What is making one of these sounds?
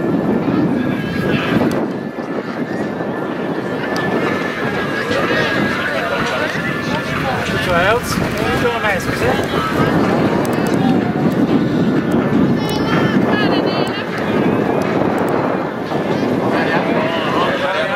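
Spectators shout and cheer encouragement outdoors.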